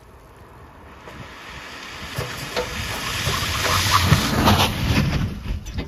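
Tyres hiss on a wet road as a car approaches.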